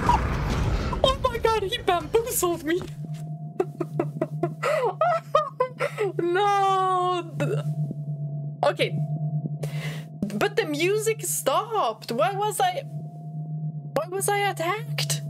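A young woman talks and exclaims with animation, close to a microphone.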